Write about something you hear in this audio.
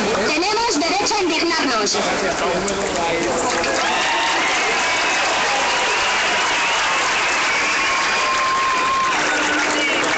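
A large crowd outdoors chants and shouts loudly.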